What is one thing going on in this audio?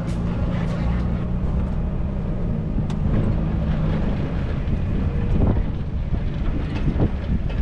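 Tyres rumble and crunch over a bumpy dirt road.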